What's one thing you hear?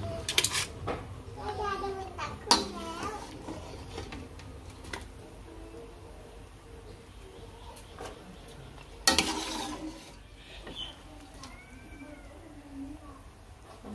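Broth splashes into a metal strainer.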